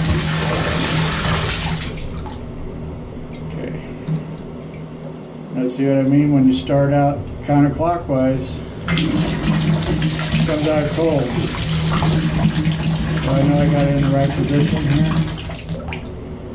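Water sprays from a pipe and splashes into a tub.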